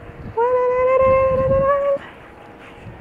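A young woman calls out close by in a long, drawn-out, cheerful voice.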